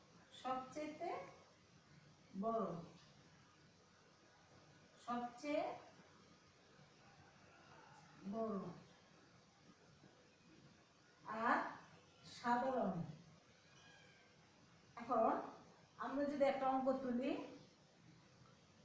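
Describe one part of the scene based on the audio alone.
A young woman speaks calmly in short phrases, close by.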